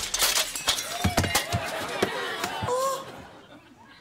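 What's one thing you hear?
Children gasp out loud.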